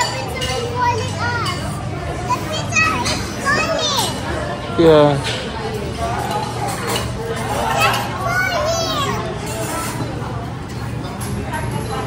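A young child's voice shouts and laughs.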